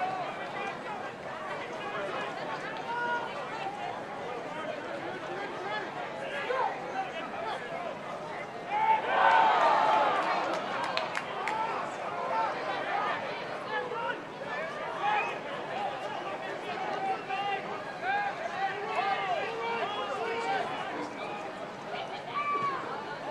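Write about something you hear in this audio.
Rugby players shout to each other across an open field.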